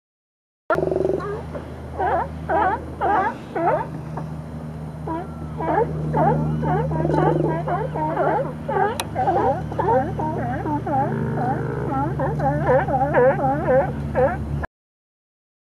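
Sea lions bark and groan in the water.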